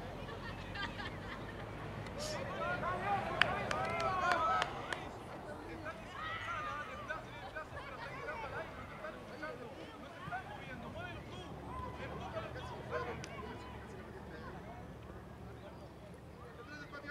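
Players shout and call out across an open field.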